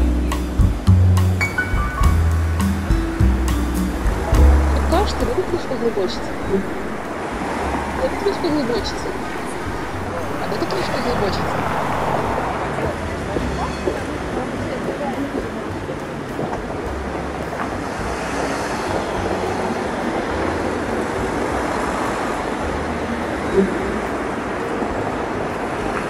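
Traffic rumbles steadily nearby outdoors.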